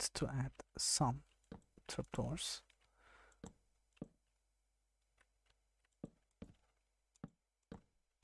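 Wooden blocks knock softly as they are placed.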